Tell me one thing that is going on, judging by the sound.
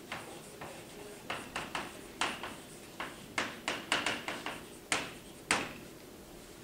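Chalk taps and scrapes on a chalkboard.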